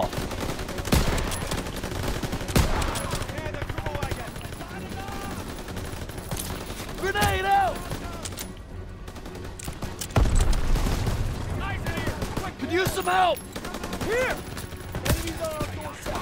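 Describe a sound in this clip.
Rifle shots ring out sharply, now and then.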